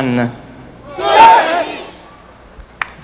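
A large crowd answers together in unison, in a large echoing hall.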